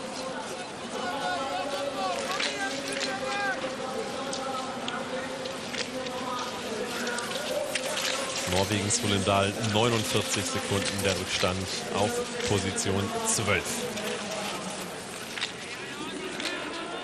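A crowd cheers and claps in the distance outdoors.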